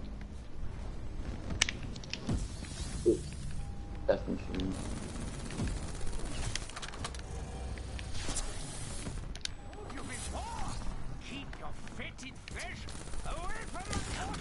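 Guns fire in rapid bursts.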